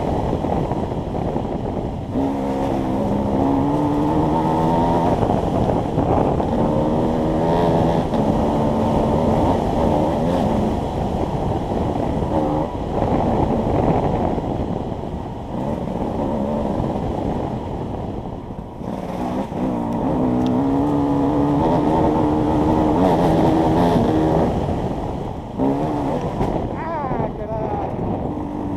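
Tyres crunch and skid over loose dirt.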